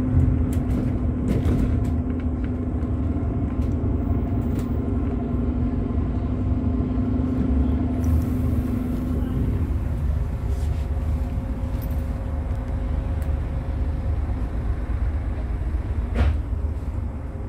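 A diesel bus engine drones, heard from the upper deck inside the bus.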